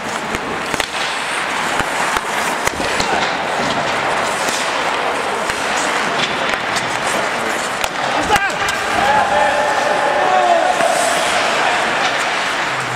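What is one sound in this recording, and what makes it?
Ice skates scrape and hiss across the ice in a large echoing hall.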